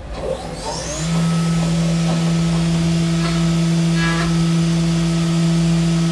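A machine spindle spins up and whirs with a steady high hum.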